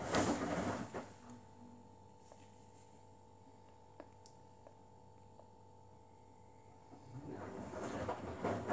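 A front-loading washing machine drum turns, tumbling wet laundry with a swishing rumble.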